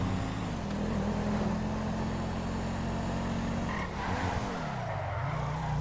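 A car engine hums steadily and shifts pitch as the car speeds up and slows down.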